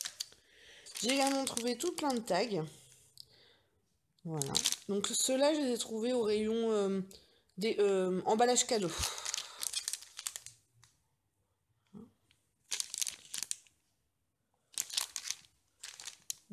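Plastic packaging crinkles as a hand handles it.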